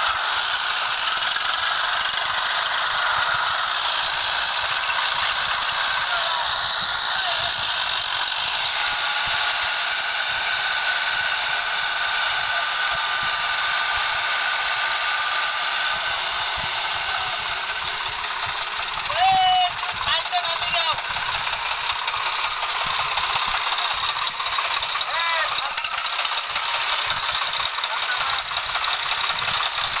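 A tractor engine roars steadily close by.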